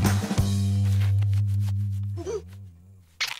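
A cartoon boy groans loudly in pain.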